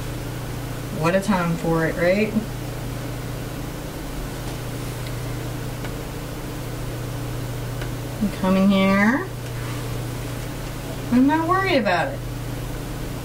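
A woman speaks briefly with animation, close by.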